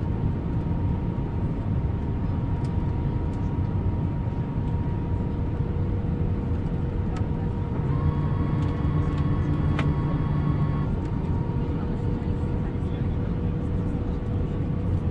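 A jet engine roars steadily with a low rumble.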